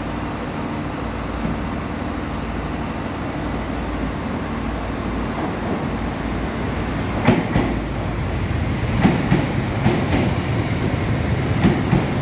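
A diesel multiple-unit train arrives and rumbles past close by.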